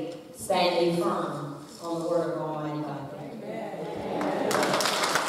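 An older woman speaks with feeling into a microphone in a large echoing room.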